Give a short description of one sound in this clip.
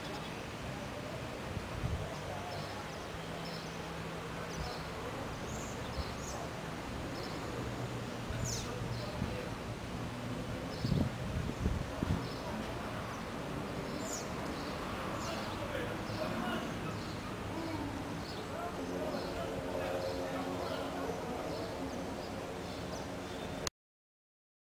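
Birds chirp nearby with short high calls.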